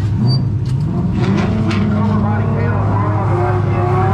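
A race car engine revs up with a rising roar.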